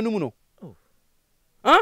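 A man speaks briefly and calmly up close.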